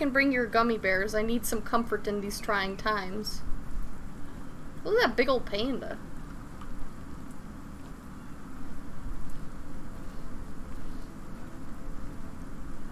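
Steady rain falls and patters on leaves and ground.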